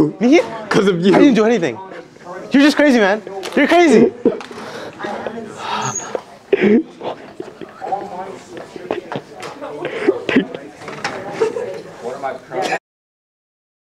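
Young people talk and laugh nearby in a room.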